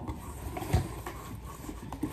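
A cardboard box rustles as it is handled.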